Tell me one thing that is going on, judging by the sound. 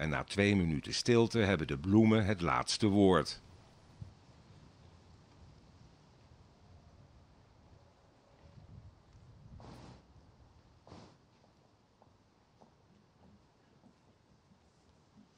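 Flags flap in the wind outdoors.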